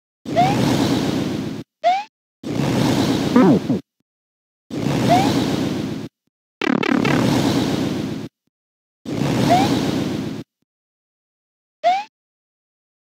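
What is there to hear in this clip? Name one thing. A dragon breathes fire in short roaring bursts.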